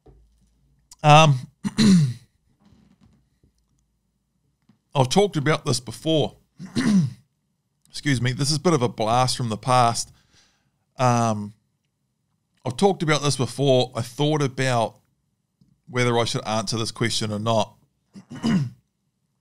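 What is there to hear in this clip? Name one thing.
A man speaks calmly and with animation close to a microphone.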